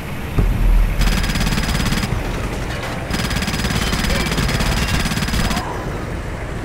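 A mounted machine gun fires in rapid bursts.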